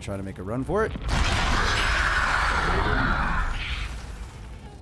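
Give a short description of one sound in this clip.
A portal whooshes with a loud rushing roar.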